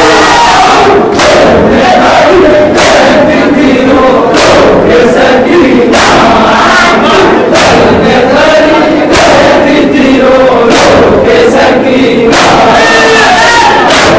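A crowd of young men chants loudly together.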